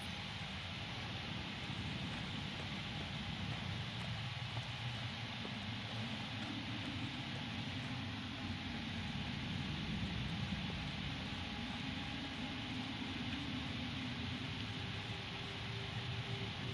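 Footsteps crunch slowly over forest ground.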